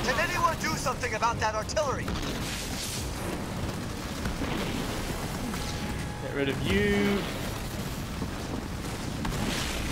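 Laser guns fire in rapid bursts during a battle.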